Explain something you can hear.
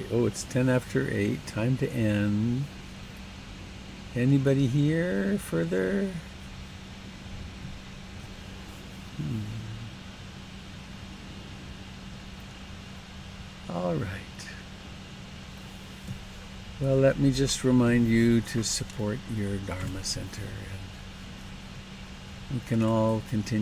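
An elderly man speaks calmly into a close headset microphone, in short bursts with pauses.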